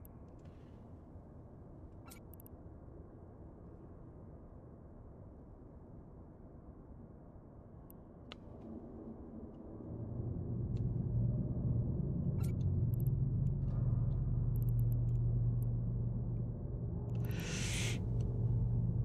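A deep engine hum drones low and swells louder.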